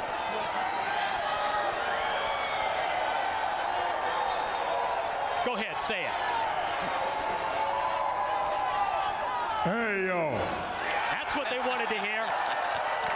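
A large crowd cheers and chants loudly throughout.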